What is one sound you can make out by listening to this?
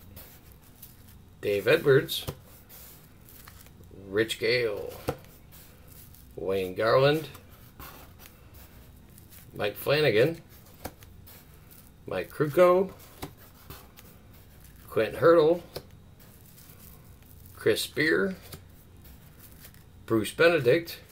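Cardboard trading cards slide and rustle softly between fingers.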